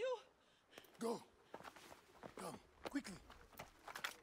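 A young man speaks urgently.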